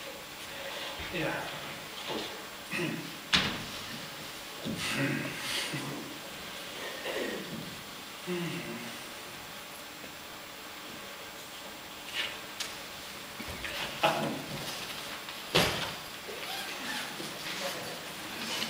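A man speaks loudly on a stage in a large hall, heard from the audience.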